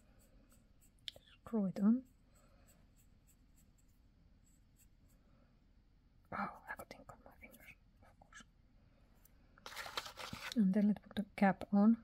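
A pen's cap is twisted and pulled off with small clicks and scrapes.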